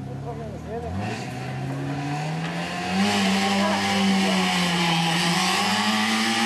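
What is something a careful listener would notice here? A rally car engine roars and revs as it approaches.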